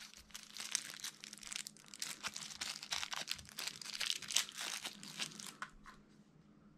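Plastic packaging crinkles and rustles in someone's hands.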